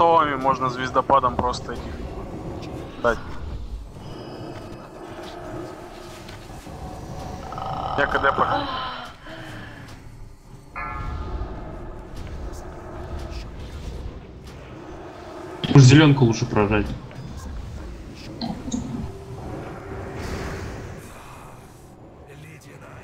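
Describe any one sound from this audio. Game combat sounds of spells and weapons crackle and clash throughout.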